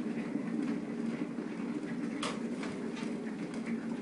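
An electric kettle clicks off.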